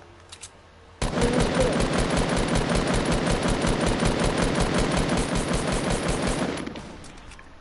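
A gun fires in a rapid, steady stream of shots.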